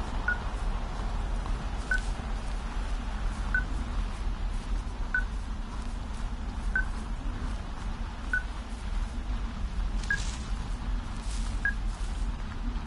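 An electronic device beeps at a steady, even pace.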